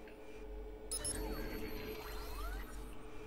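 A brief burst of static hisses.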